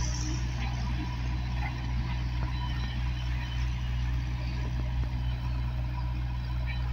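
A backhoe loader's diesel engine rumbles steadily nearby.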